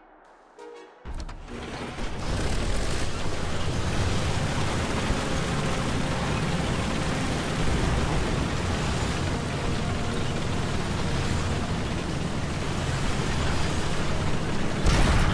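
Tank tracks clank and grind over the ground.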